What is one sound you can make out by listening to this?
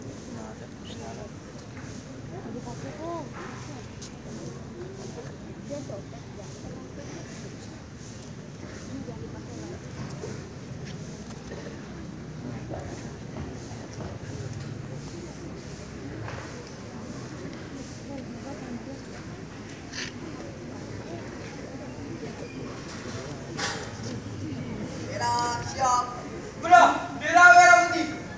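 A large group of people murmurs quietly outdoors.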